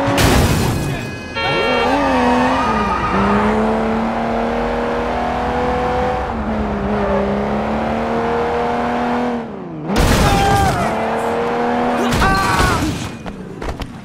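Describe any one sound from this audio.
A car engine roars and revs as the car speeds along.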